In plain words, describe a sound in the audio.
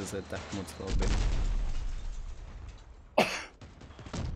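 A loud explosion booms.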